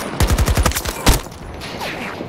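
A single loud gunshot cracks and echoes.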